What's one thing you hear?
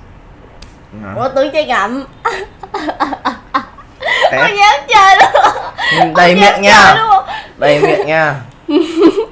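A young woman laughs and talks up close.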